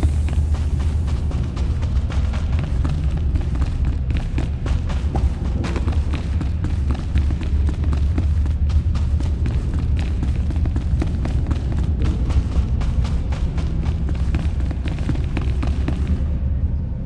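Quick footsteps clatter on a hard metal floor.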